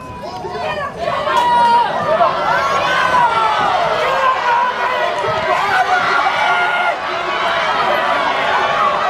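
A crowd cheers and shouts excitedly.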